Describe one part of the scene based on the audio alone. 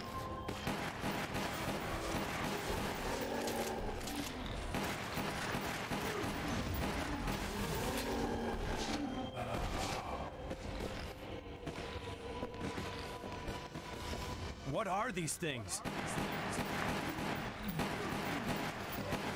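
Gunshots ring out in a game.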